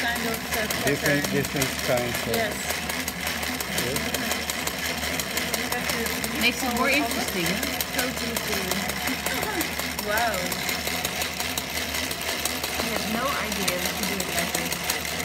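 A sewing machine needle hammers rapidly and steadily up and down.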